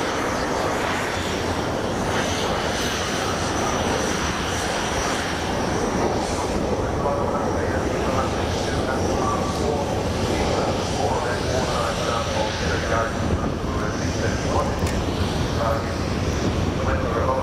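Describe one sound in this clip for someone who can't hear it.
A jet bomber roars loudly overhead with a deep rumbling howl.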